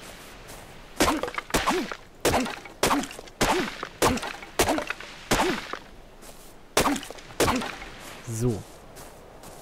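A hatchet chops into a tree trunk with repeated dull thuds.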